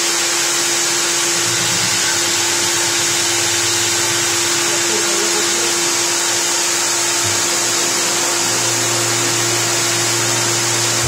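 A core drill runs with a loud, steady whine and rush.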